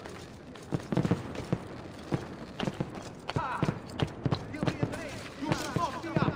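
Footsteps thud and scrape on roof tiles.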